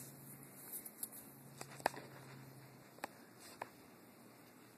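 Paper rustles and clicks as it is handled.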